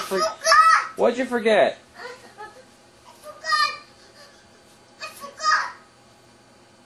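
A young child calls out excitedly nearby.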